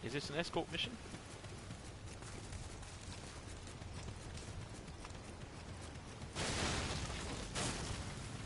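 Footsteps crunch on leaves and dirt.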